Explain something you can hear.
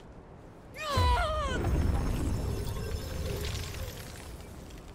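A magic blast whooshes and rumbles.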